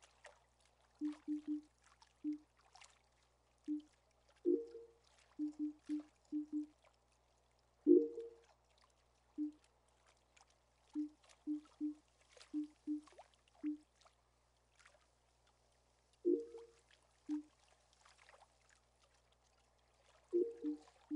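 Short soft electronic blips sound as menu choices change.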